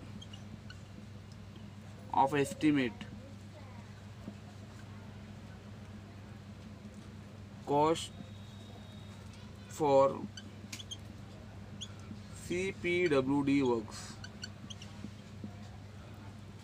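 A marker squeaks softly across a whiteboard.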